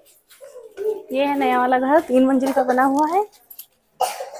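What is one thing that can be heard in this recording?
A young child talks in a high voice.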